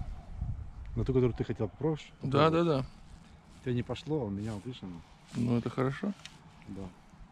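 A middle-aged man talks animatedly close by.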